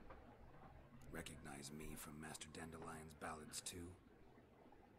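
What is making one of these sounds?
A man speaks calmly in a low, gravelly voice.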